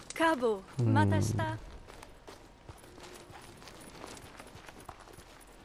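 Footsteps crunch on gravel at a quick pace.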